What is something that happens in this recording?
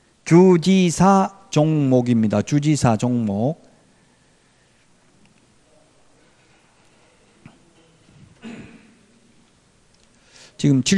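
A middle-aged man speaks into a microphone in an animated lecturing voice, with pauses.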